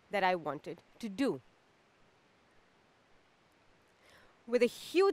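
A young woman speaks expressively close by, pausing between phrases.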